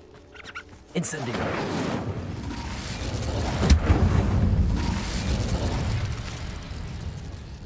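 Flames roar and crackle.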